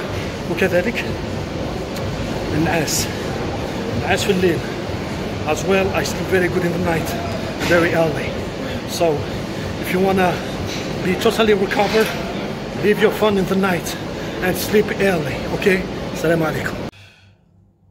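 A man talks with animation close to a microphone, in a noisy echoing room.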